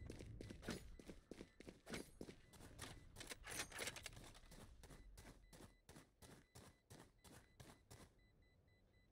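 Quick footsteps tap in a steady run.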